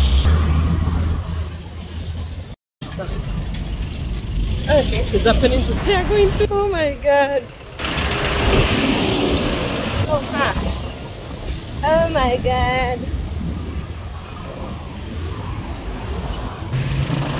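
A woman talks with animation close to the microphone.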